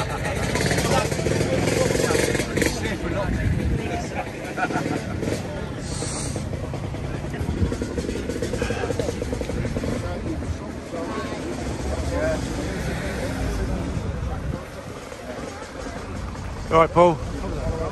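A man talks close by in a calm voice.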